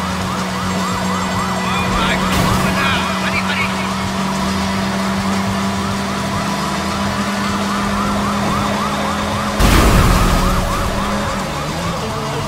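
A police siren wails rapidly and continuously nearby.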